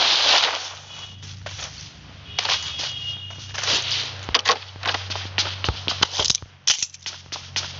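Footsteps tap quickly across the ground and a wooden floor.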